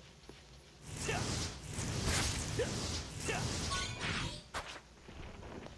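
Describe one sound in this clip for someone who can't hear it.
A heavy blade whooshes and clangs in quick swings.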